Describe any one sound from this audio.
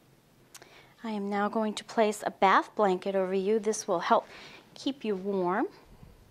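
A woman speaks gently and calmly nearby.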